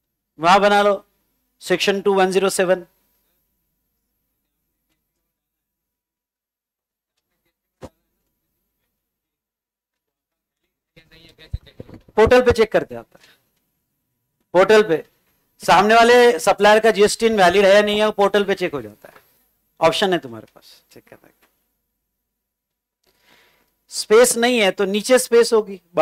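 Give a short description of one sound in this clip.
A man lectures with animation into a close microphone, pausing often.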